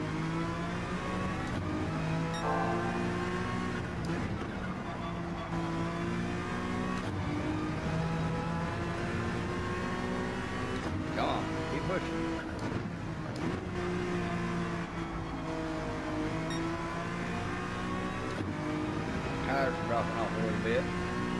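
A racing car engine roars steadily, its pitch rising and falling with gear shifts.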